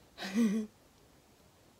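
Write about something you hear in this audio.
A young girl speaks briefly and cheerfully close by.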